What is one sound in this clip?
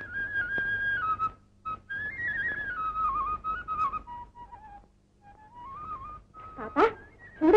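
A flute plays a melody.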